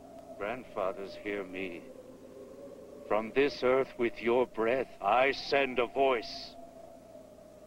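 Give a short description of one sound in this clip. A man speaks intensely close by.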